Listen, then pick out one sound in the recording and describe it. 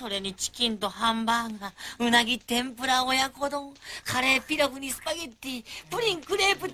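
A second man speaks dreamily.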